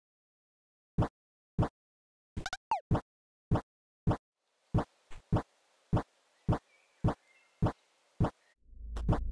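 Short sharp game sound effects click in quick succession.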